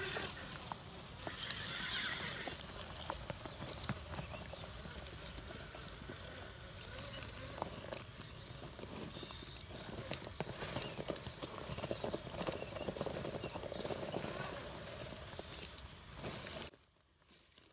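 A small electric motor whines as a toy truck crawls over rocks.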